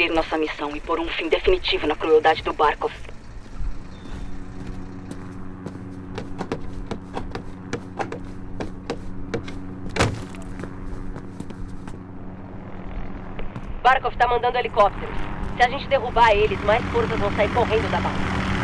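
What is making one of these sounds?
Footsteps crunch over a gritty floor.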